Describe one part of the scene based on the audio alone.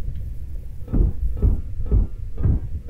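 Scrap metal clatters as it is picked up.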